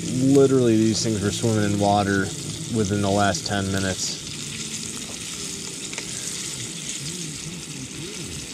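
Metal tongs scrape and clink against a frying pan.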